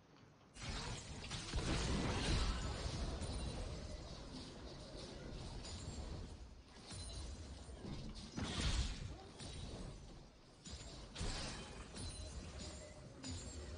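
Game characters' weapons strike with sharp hits.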